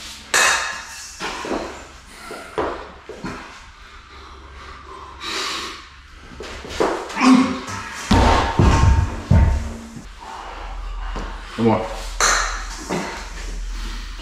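A man grunts with effort as he lifts.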